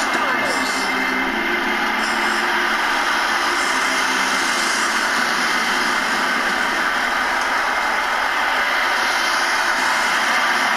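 A large crowd cheers and roars loudly in a big echoing arena.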